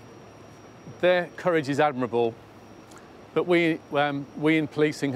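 An older man speaks calmly and clearly into a microphone.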